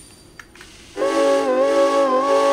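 A steam locomotive whistle blows loudly.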